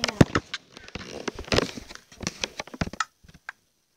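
An arrow is shot from a bow with a sharp twang.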